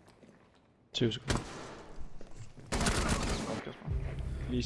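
Gunshots ring out in short rapid bursts.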